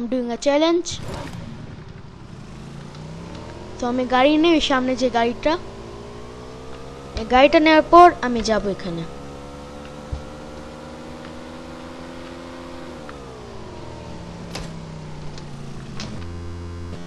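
A motorcycle engine hums steadily, rising in pitch as it speeds up and dropping as it slows.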